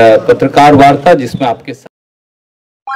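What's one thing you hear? A man speaks into a microphone with animation, close by.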